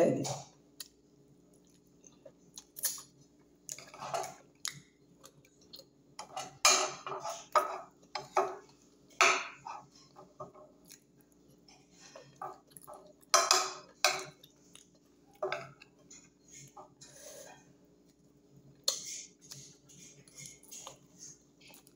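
A woman smacks her lips while eating.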